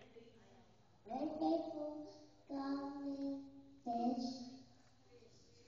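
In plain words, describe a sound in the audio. A young boy speaks in a high voice into a microphone.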